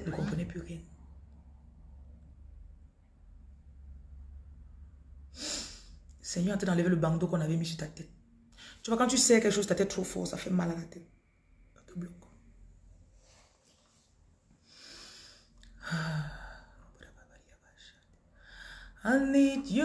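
A woman speaks close by, with emotion and pauses.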